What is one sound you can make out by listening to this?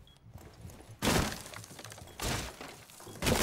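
Gunshots blast through a wooden wall, and splinters crack.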